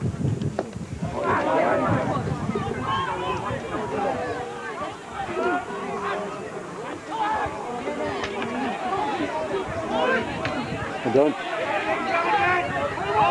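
A crowd of spectators shouts and cheers close by, outdoors.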